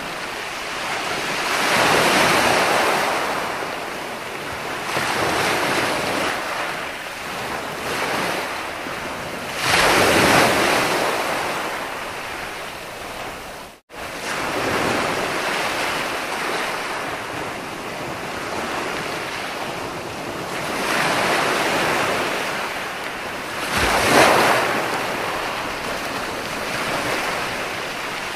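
Waves crash and break onto a beach.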